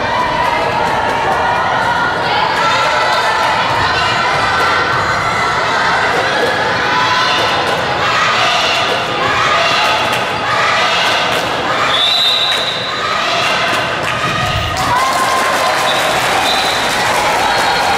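A crowd of spectators cheers and chants loudly in a large echoing hall.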